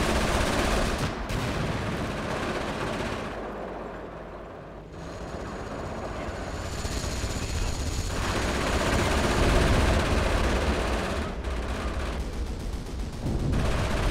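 Explosions boom and rumble in a battle.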